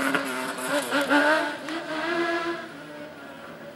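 A rally car engine roars and revs hard as it passes close by.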